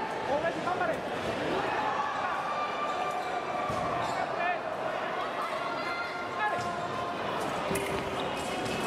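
Sports shoes squeak on the floor as fencers move.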